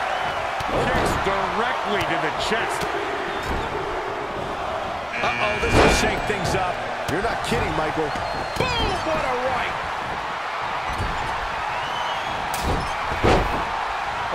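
Bodies slam onto the wrestling mat with heavy thuds.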